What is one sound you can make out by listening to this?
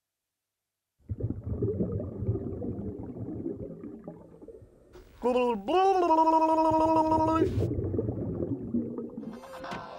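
Air bubbles rumble and gurgle underwater.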